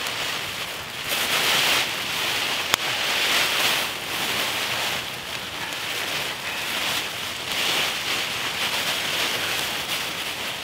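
A small campfire crackles and pops.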